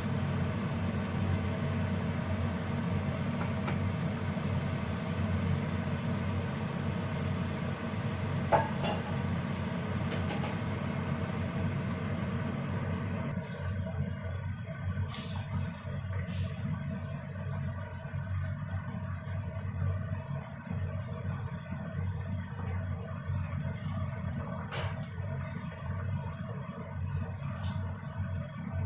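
A sauce bubbles and simmers in a pan.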